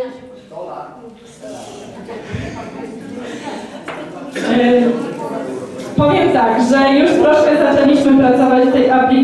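Elderly men and women chat and murmur together in a room.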